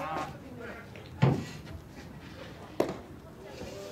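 A baseball pops into a catcher's mitt.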